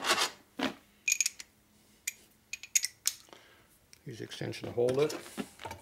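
Metal tools clink against each other.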